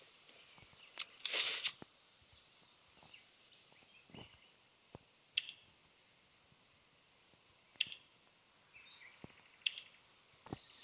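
Short game menu clicks tick now and then.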